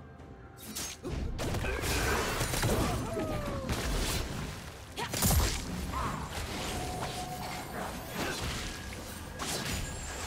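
Spell blasts and hits crash and whoosh in a fast video game fight.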